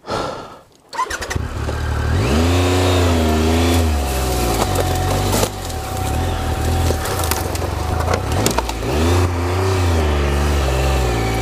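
A motorcycle engine starts up and revs, rising and falling.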